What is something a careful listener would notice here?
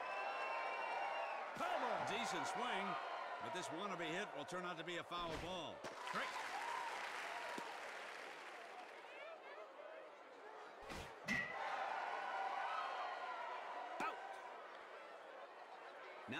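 A crowd cheers and murmurs in a large stadium.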